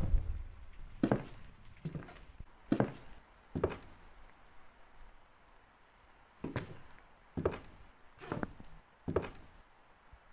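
Footsteps thud slowly across a wooden floor.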